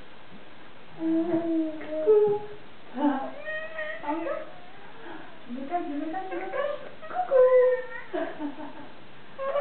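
A baby giggles and babbles happily close by.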